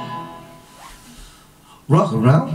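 An acoustic guitar chord rings out and fades.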